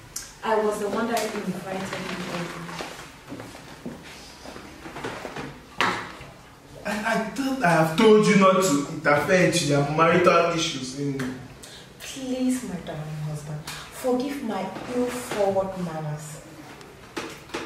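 A woman speaks firmly, close by.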